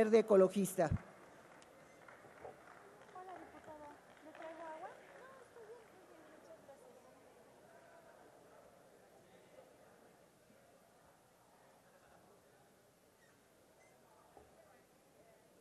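A crowd murmurs faintly in a large echoing hall.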